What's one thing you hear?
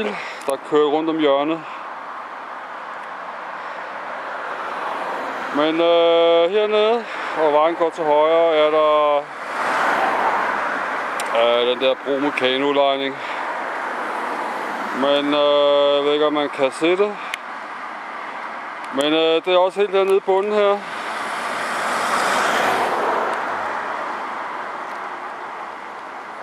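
Road traffic rumbles past, with cars and vans driving by.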